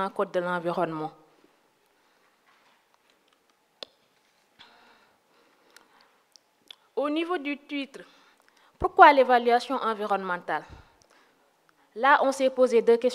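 A young woman speaks calmly into a microphone, with pauses.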